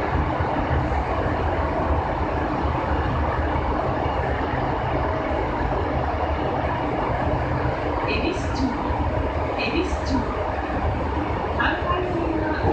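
Train wheels clatter on the rails.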